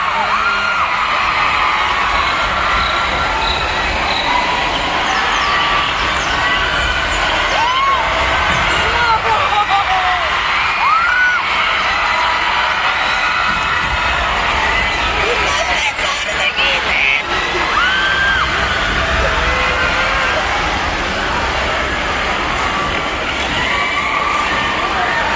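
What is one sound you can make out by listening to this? A large crowd screams and cheers in a huge echoing arena.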